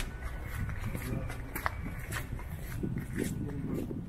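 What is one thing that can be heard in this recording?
Footsteps tap on wet cobblestones nearby.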